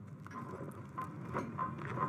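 A man rattles a window frame.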